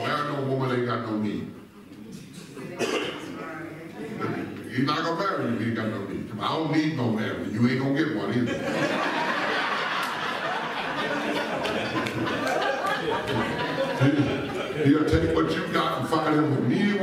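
A man preaches with animation through a loudspeaker in a large echoing hall.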